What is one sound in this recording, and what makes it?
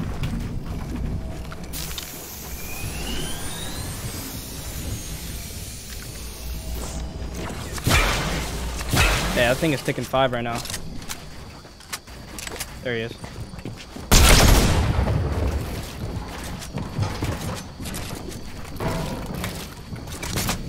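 Building pieces snap into place with quick clacks.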